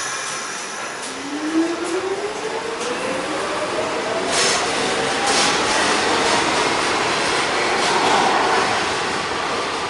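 A train's electric motors whine, rising in pitch as the train speeds up.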